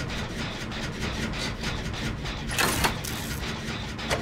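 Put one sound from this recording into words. A machine rattles and clanks as it is worked on.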